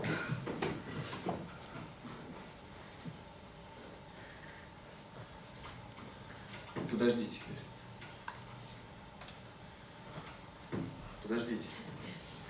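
Bare feet shuffle softly on a wooden floor.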